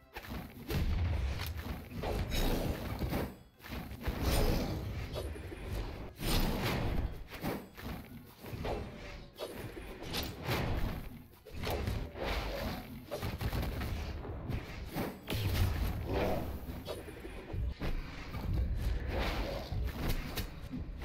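Punches, slashes and hits from a video game fight land in quick bursts.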